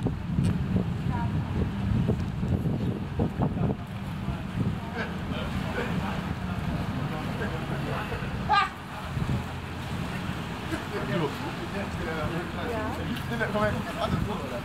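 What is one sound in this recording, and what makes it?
Men talk calmly in a group nearby.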